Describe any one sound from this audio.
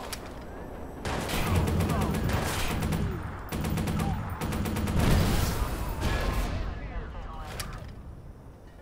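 An assault rifle fires in rapid bursts.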